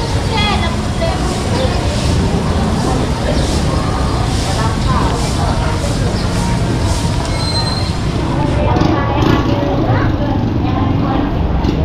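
A crowd of people chatters nearby in a busy, echoing space.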